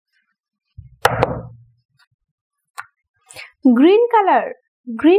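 A small plastic paint jar clicks as it is twisted open.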